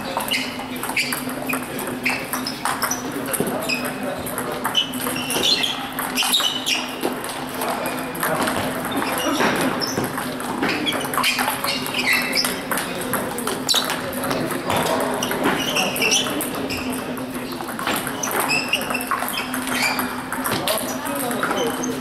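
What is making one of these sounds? A table tennis ball clicks on paddles and the table in a rally.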